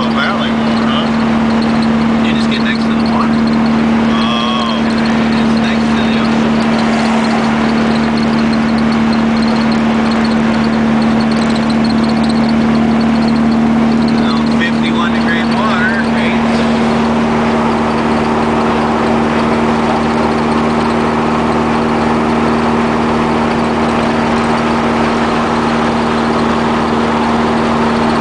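A car engine drones steadily from close by.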